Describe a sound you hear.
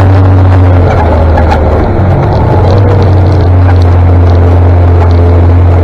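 A tractor engine rumbles steadily just ahead.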